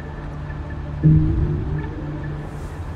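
A low swelling chime sounds.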